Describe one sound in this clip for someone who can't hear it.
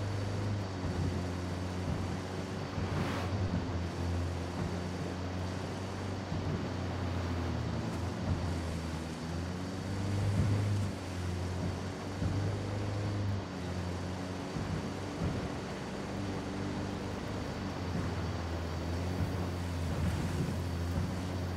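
A van engine hums steadily as the van drives along.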